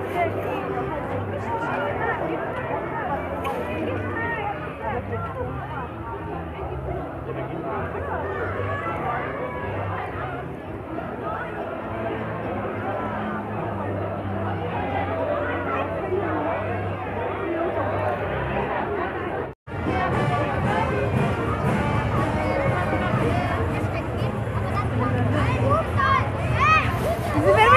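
A crowd of children and adults chatters outdoors.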